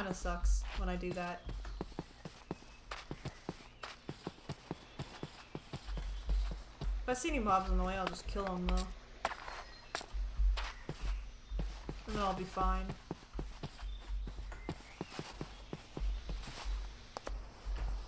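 Footsteps patter on grass.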